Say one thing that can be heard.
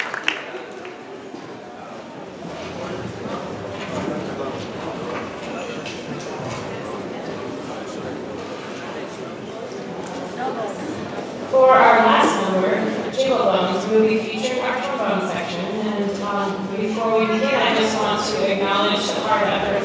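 A band plays music.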